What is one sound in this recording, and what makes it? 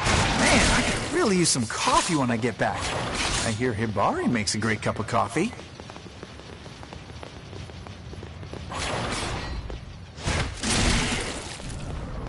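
Heavy blades slash and strike with loud, sudden hits.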